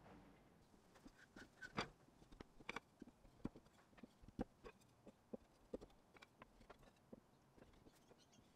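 Wooden slats clatter and knock together.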